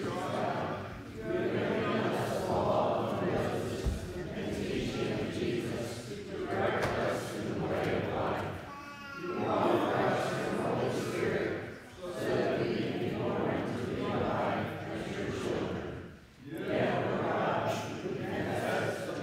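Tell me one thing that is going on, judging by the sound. A congregation of men and women sings a hymn together in phrases, in a room with a slight echo.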